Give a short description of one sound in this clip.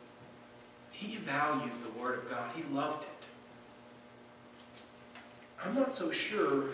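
A man speaks calmly into a microphone in a large room with a slight echo.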